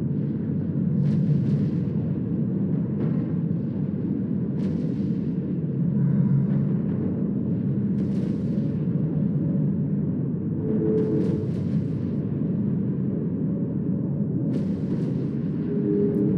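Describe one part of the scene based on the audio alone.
A deep steady engine rumble hums throughout.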